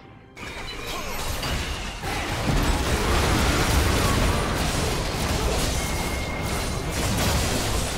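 Game spell effects crackle and whoosh during a fight.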